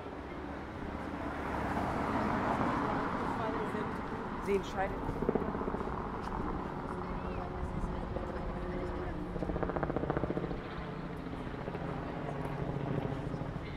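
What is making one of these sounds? A truck rumbles past slowly.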